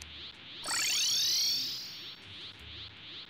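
A bright magical chime shimmers and fades.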